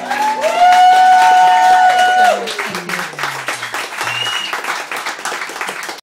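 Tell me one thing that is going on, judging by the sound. Acoustic guitars strum briskly.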